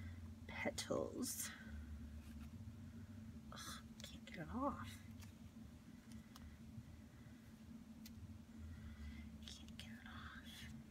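Paper rustles softly as hands handle it.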